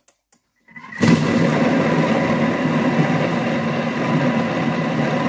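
A kitchen machine's motor starts up and whirs loudly and steadily.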